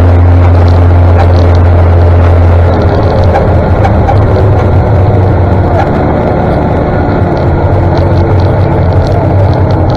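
A tractor engine chugs steadily just ahead.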